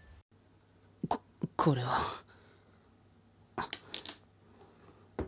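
Plastic pieces knock and clatter against each other.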